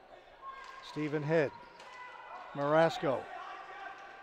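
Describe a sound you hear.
Players shout loudly across an echoing indoor rink.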